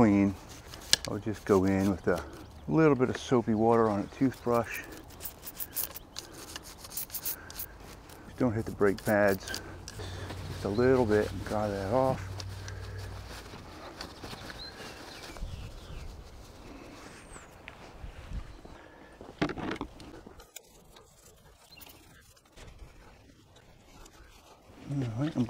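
Paper towel rubs and rustles against metal.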